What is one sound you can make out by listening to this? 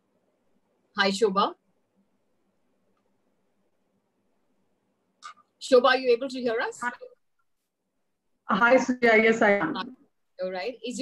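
A middle-aged woman speaks calmly and warmly over an online call.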